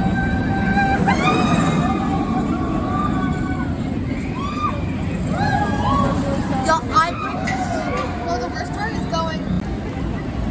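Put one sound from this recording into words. Riders on a roller coaster scream loudly.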